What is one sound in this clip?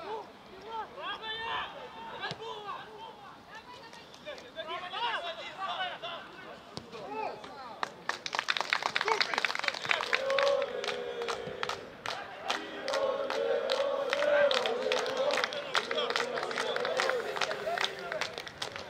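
Football players shout to each other across an open pitch.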